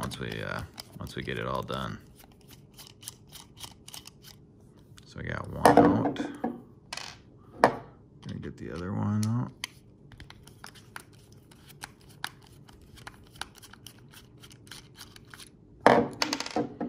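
A screwdriver turns a small screw with faint ticking clicks.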